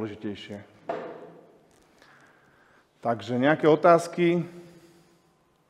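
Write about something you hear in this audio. A man speaks through a microphone in an echoing room.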